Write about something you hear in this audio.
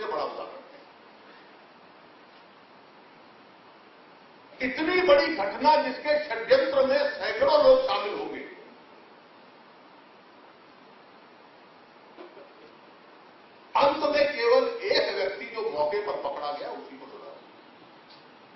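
A middle-aged man speaks forcefully into a microphone in bursts, with pauses between.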